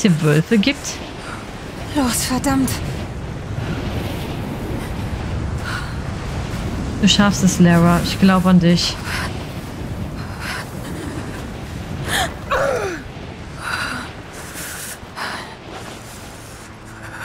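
Wind howls steadily in a blizzard.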